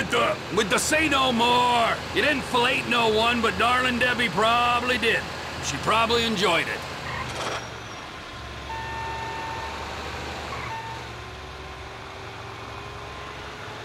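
A heavy vehicle engine hums and drones steadily.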